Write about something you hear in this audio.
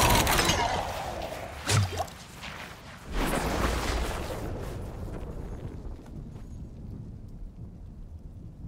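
Fires crackle and roar softly.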